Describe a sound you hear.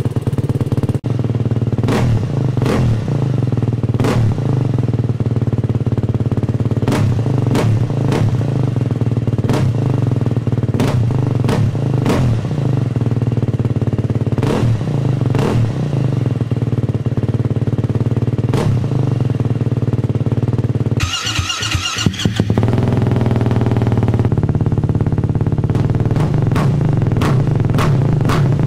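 A motorcycle engine is revved in short, sharp bursts.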